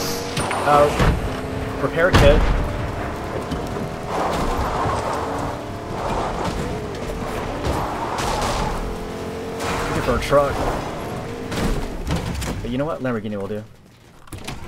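A truck engine roars and rumbles as it drives fast.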